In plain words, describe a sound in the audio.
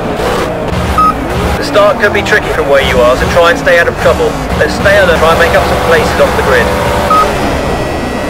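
A start beep sounds.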